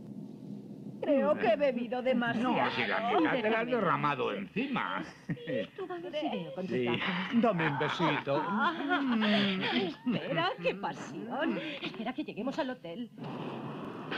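A man talks and laughs close by.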